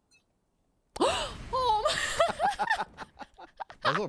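A young woman screams in fright into a microphone.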